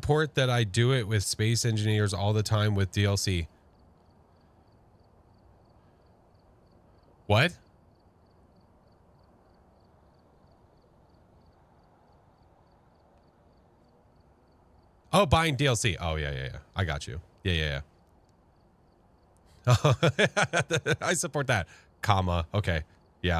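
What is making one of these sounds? A man talks with animation close to a microphone, with pauses between bursts of speech.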